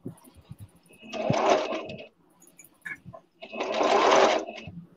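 A sewing machine runs in short bursts.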